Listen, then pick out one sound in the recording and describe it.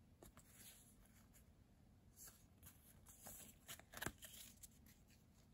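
Stiff trading cards rustle and flick as a hand shuffles through them.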